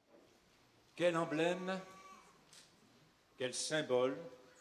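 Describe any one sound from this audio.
A middle-aged man speaks calmly into a handheld microphone, heard through loudspeakers.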